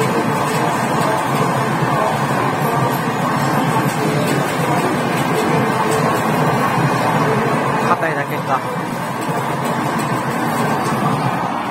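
Galloping hooves drum through a loudspeaker.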